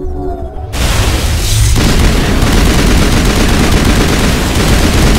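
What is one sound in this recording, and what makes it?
Energy blasts crackle and burst.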